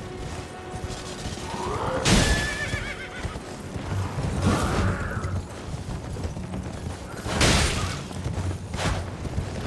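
Horse hooves clop on stone.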